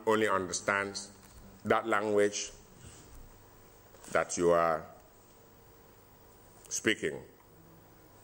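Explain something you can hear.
A middle-aged man speaks calmly into a microphone in short bursts with pauses.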